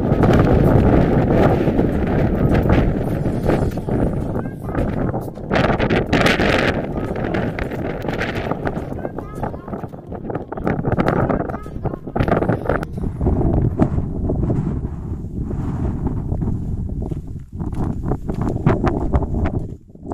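Strong wind gusts and buffets outdoors.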